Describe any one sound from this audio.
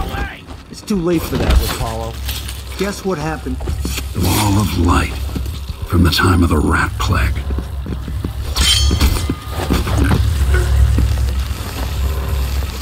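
A man grunts and groans in pain.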